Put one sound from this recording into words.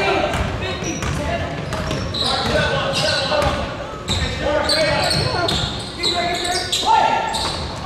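Young players call out to each other in an echoing gym.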